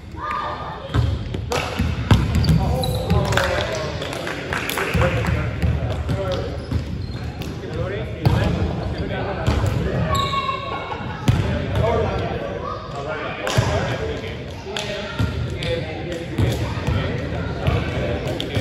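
A volleyball thuds against hands and arms in an echoing gym.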